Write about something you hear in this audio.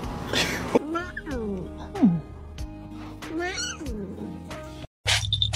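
A cat yowls loudly.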